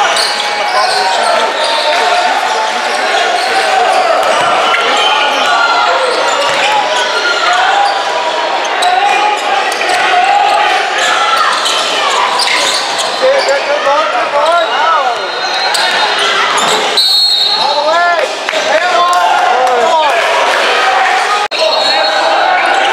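Spectators chatter throughout a large echoing gym.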